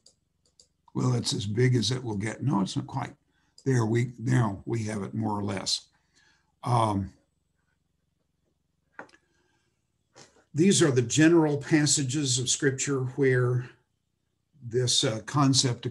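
An elderly man speaks calmly through a computer microphone, lecturing.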